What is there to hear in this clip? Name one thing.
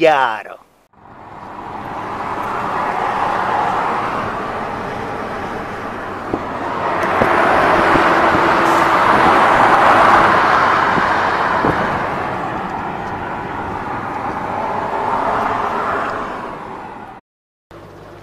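A V8 sedan cruises at highway speed.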